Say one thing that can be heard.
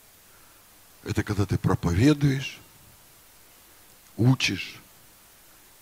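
A middle-aged man speaks emphatically into a microphone over loudspeakers.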